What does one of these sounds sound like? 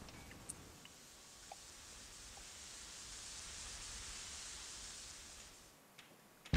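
A smoke grenade hisses as it releases smoke.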